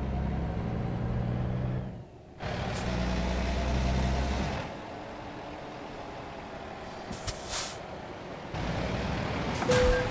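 Tyres roar on a highway.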